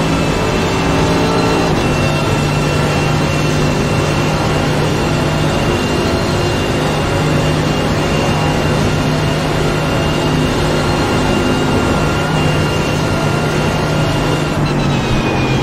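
A gearbox whines at a steady high pitch.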